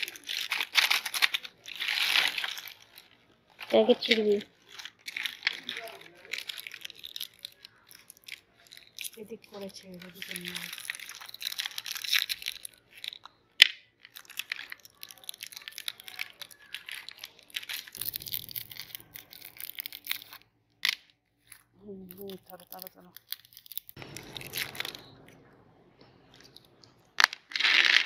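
Plastic candy wrappers crinkle and rustle close by.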